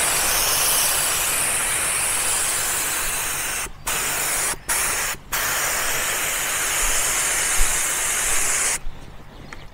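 A compressed-air spray gun hisses in bursts.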